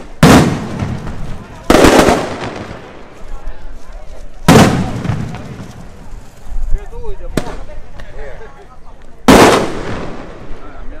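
Loud firecracker blasts boom outdoors and echo away.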